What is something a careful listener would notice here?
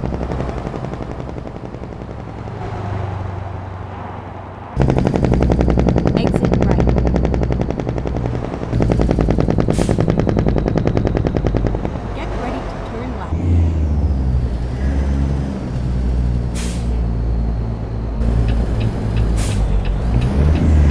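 A truck's diesel engine rumbles and drones steadily.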